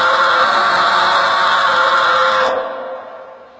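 A man screams loudly and close by.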